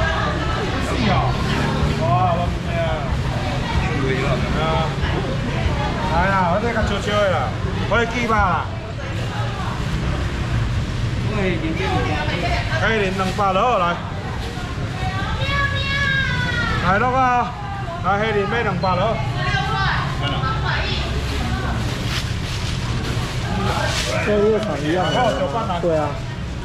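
A busy market murmurs with many voices.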